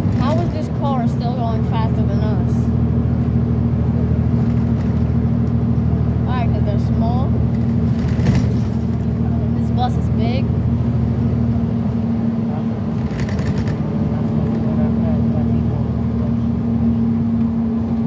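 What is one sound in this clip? A vehicle's engine hums steadily from inside while driving.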